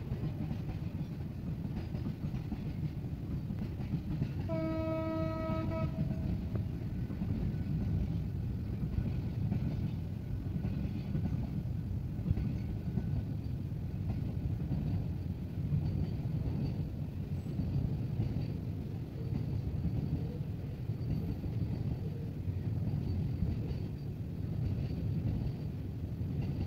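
A long freight train rumbles steadily past on the rails.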